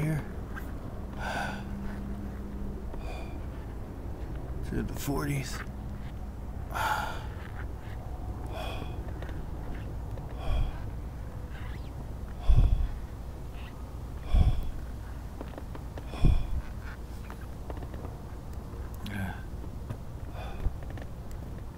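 Footsteps scuff slowly on pavement.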